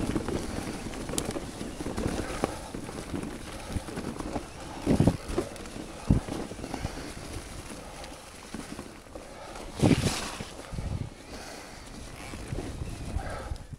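A mountain bike rattles and thumps over bumps.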